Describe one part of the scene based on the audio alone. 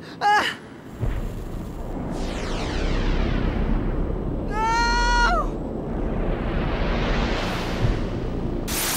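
An energy blast roars and whooshes with a deep rumble.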